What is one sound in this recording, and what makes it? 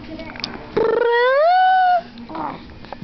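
A baby lets out a long, rising squeal close by.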